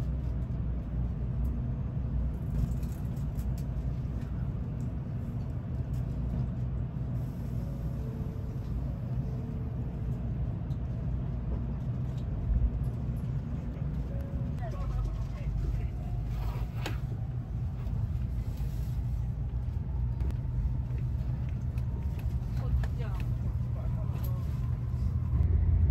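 A train rumbles steadily, heard from inside a carriage.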